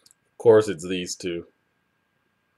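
A young man speaks briefly and calmly into a microphone close by.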